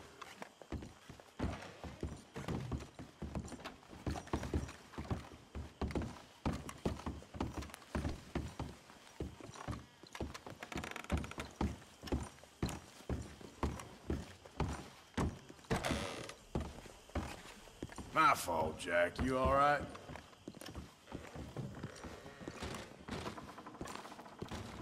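Footsteps thud steadily on wooden stairs and floorboards.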